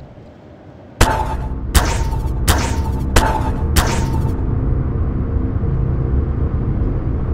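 Giant robots rumble and clank loudly.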